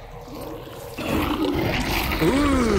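A creature bursts apart with a wet, heavy splatter.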